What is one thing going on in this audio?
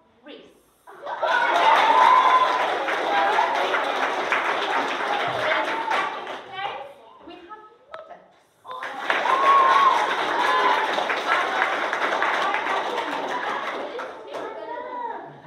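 A room full of children claps.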